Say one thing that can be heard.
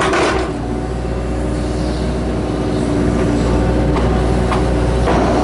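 A diesel engine rumbles steadily up close.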